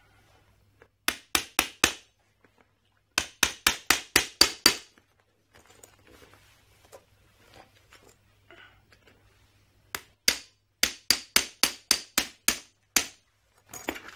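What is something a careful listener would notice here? A combination lock's dial clicks rapidly.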